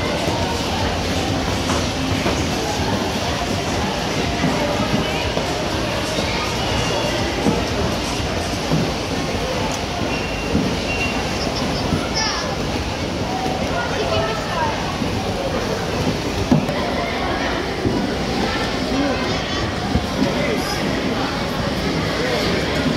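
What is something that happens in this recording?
Ice skates scrape and swish across ice.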